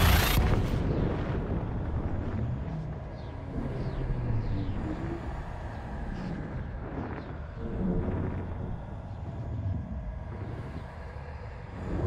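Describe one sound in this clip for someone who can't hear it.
A spacecraft engine rumbles deeply and steadily.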